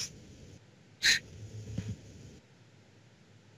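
A teenage boy laughs over an online call.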